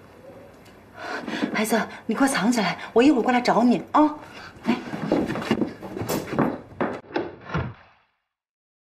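A young woman speaks urgently in a hushed voice, close by.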